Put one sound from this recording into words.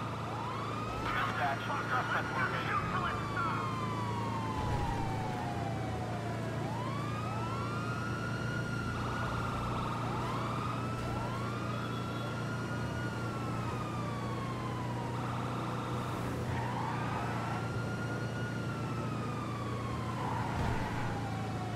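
A truck engine revs up and winds down repeatedly as it shifts gears.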